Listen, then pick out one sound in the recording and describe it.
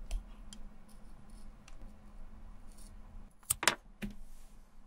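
Scissors snip through a thin sheet of rubber.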